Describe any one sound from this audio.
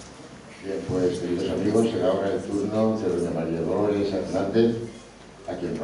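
A band plays music in a large hall.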